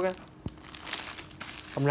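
Plastic wrapping crinkles as a hand handles packets.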